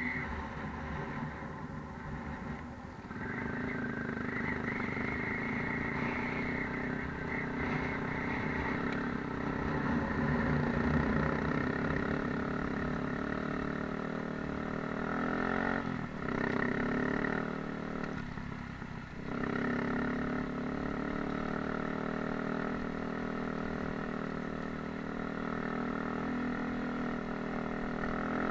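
A motorbike engine hums steadily close by, rising and falling as it rides over rough ground.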